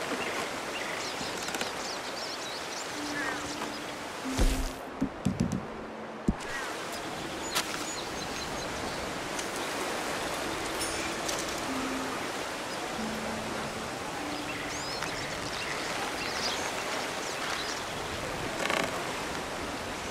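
Footsteps thud on wooden bridge planks.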